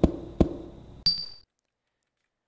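A brief electronic save tone sounds.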